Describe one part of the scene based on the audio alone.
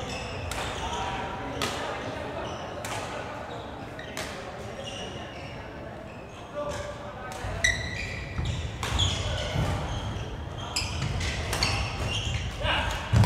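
Shoes squeak sharply on a wooden floor.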